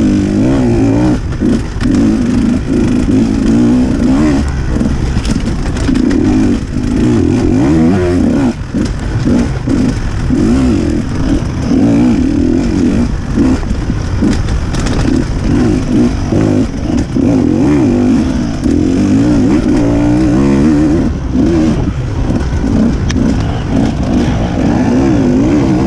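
A dirt bike engine revs and bogs up close, rising and falling constantly.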